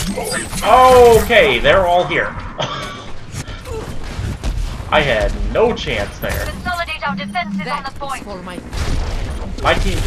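Explosions boom and crackle nearby.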